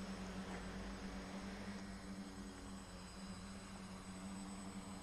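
A small drone's motors whir steadily close by.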